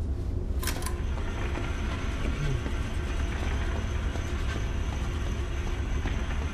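A cart's wheels rattle as it is pushed along.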